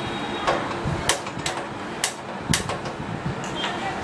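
A spoon clinks and scrapes against a metal pot.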